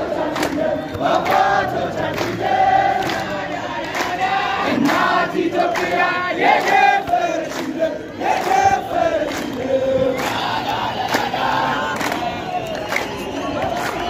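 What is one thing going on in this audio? A large crowd of men and women chants and sings loudly outdoors.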